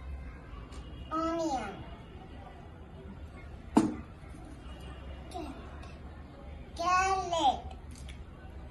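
A little boy speaks in a high voice close by.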